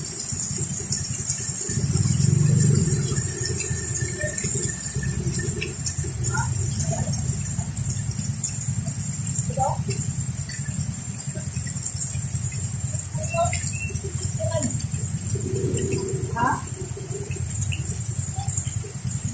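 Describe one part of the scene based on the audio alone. Heavy rain pours down onto a wet road.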